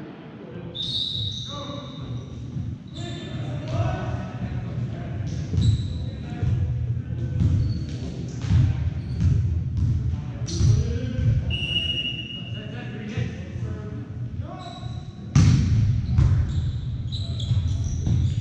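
Players and spectators shout and chatter in a large echoing gym.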